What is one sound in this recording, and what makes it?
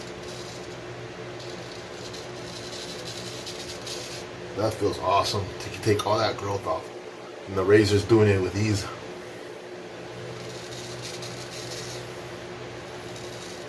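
A straight razor scrapes over lathered stubble.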